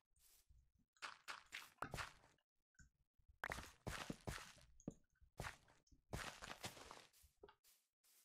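Dirt crunches in short bursts as blocks are dug out of the ground.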